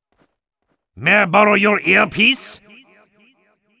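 A man speaks in a low, sly voice, close by.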